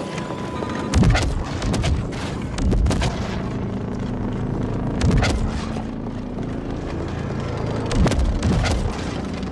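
Heavy blasts boom several times.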